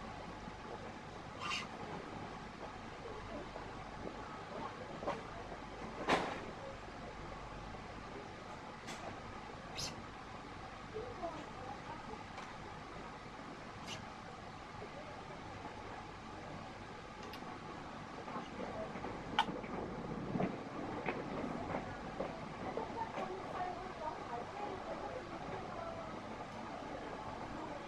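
String slides and rasps through a racket's frame as hands weave it.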